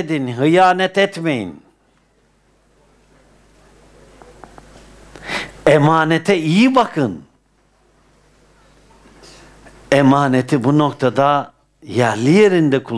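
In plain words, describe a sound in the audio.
An elderly man chants melodiously through a headset microphone, in phrases with pauses between them.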